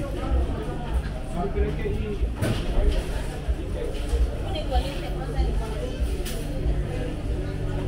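Several men and women chatter indistinctly indoors.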